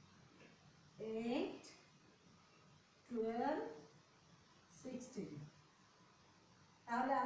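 A woman speaks slowly and clearly, in short phrases, nearby.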